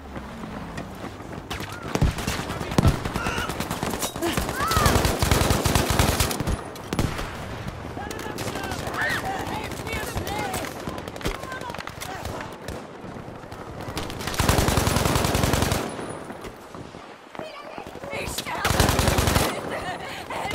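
A machine gun fires long rattling bursts.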